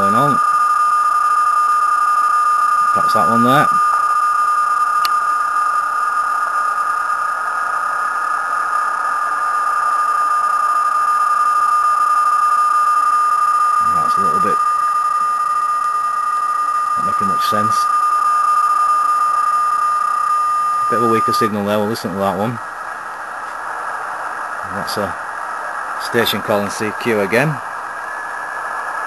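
Static hisses from a radio.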